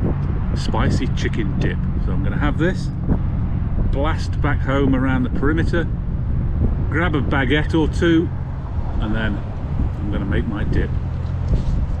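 A middle-aged man talks calmly and close up, outdoors.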